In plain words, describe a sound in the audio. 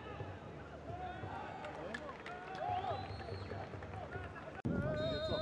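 Young men shout to each other across an outdoor football pitch.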